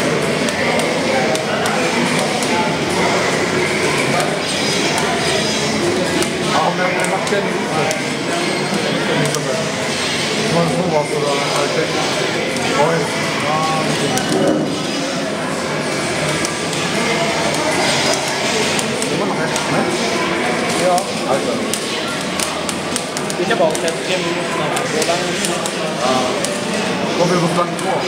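Fighting game music plays steadily throughout.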